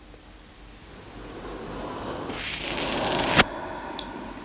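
A young woman breathes in deeply and slowly.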